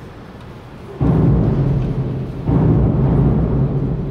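A pipe organ plays loud, deep chords that ring out in a large echoing hall.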